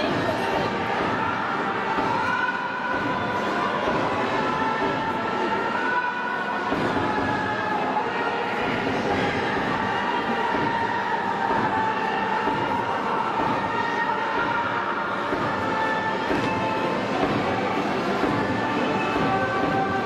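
A large crowd cheers and chants loudly in a big echoing stadium.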